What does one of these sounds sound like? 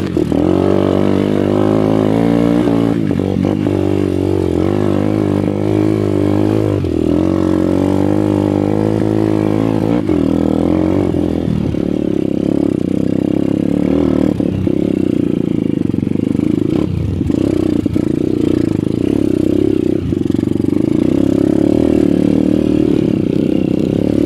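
A dirt bike engine revs loudly up close, rising and falling as it climbs.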